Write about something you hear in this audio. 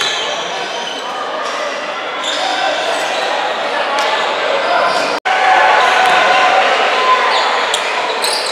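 Voices of people chatter and call out in a large echoing gym.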